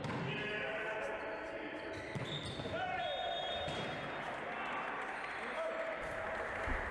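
Young men shout together as they celebrate.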